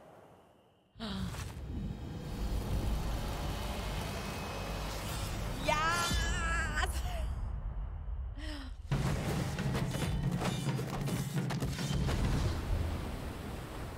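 A deep, loud magical burst roars and rumbles.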